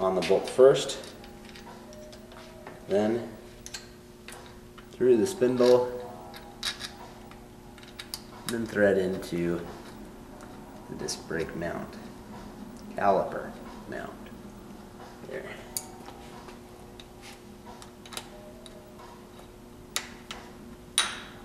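Small metal parts click and tap.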